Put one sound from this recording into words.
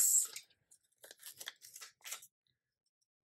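A sticker peels softly off its backing paper.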